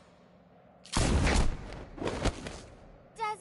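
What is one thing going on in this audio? A heavy body slams hard onto the ground.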